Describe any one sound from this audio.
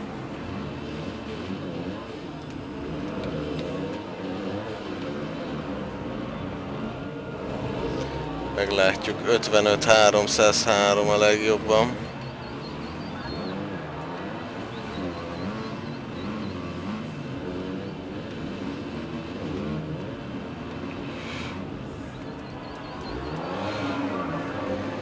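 Motorbike engines roar and rev up and down.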